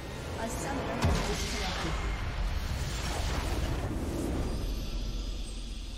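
A bright magical chime swells as a crystal shatters.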